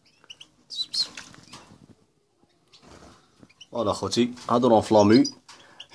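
A small bird flutters its wings in a cage.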